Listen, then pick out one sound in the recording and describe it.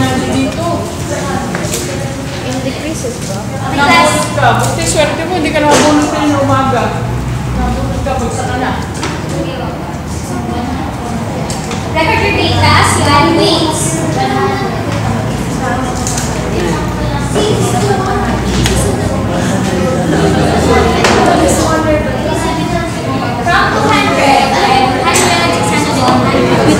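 Several young people chatter close by.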